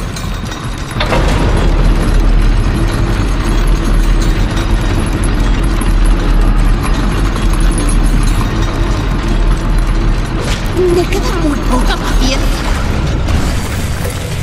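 A heavy platform rumbles steadily as it descends.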